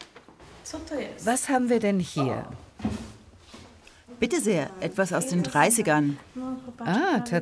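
A young woman talks brightly close by.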